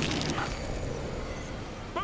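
A blue portal whooshes and hums.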